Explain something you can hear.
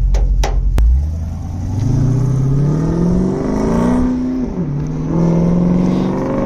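A truck engine revs as the truck pulls away and drives off.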